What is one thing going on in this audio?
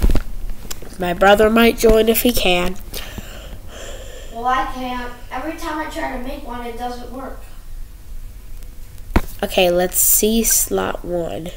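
A boy talks casually into a close microphone.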